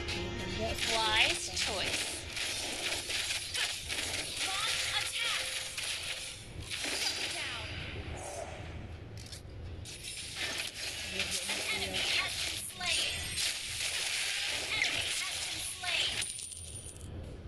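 Magic blasts and sword strikes clash in a fast, noisy fight.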